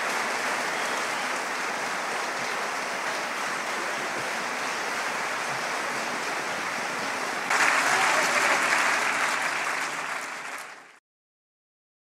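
A large audience applauds steadily, growing louder before fading out.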